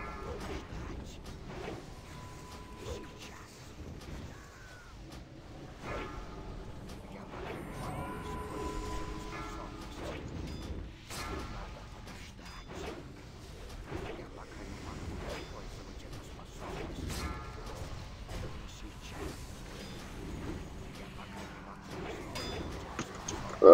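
Magic spells whoosh, crackle and boom in a fantasy battle.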